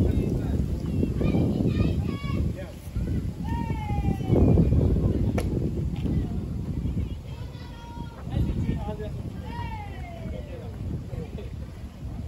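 Young players shout calls across an open field.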